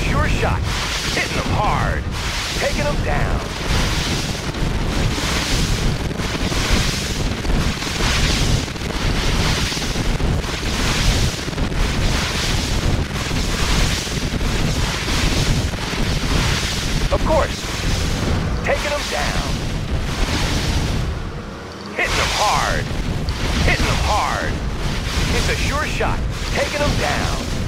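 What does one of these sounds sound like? Laser weapons zap and buzz during a battle.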